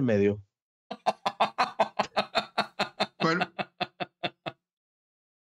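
Several men laugh over an online call.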